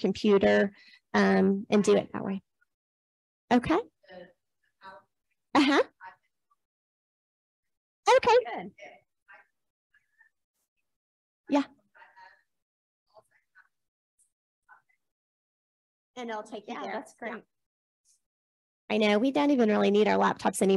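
A woman speaks calmly through a microphone in a room, with pauses.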